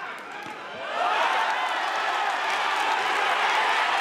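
A crowd cheers and roars loudly in a large echoing hall.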